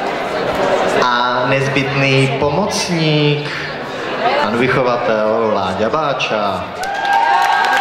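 A young woman speaks into a microphone, heard through loudspeakers.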